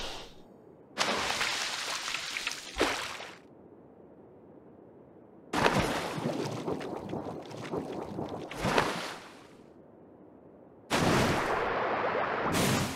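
Water splashes and bubbles in bursts.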